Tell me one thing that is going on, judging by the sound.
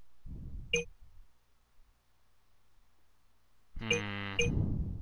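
A short bright chime sounds as a game menu selection moves.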